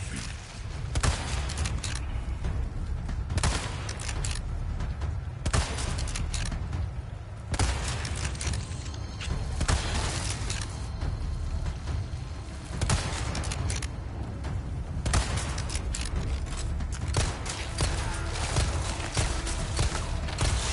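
Gunshots bang out sharply, one at a time, with a short echo.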